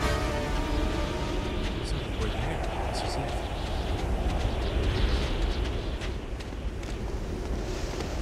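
Footsteps crunch quickly on sand and stone.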